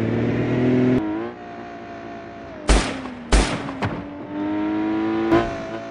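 A car engine hums and changes pitch.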